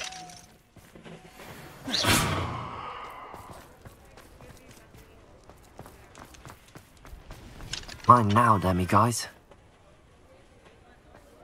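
Footsteps tap on stone pavement.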